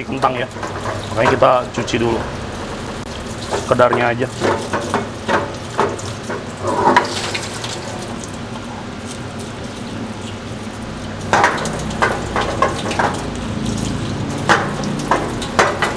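Hands rub and shuffle wet potato slices against a plate.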